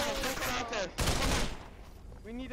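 A gun fires in loud sharp bursts.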